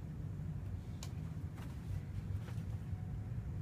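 A young child's bare feet thump softly on a bed.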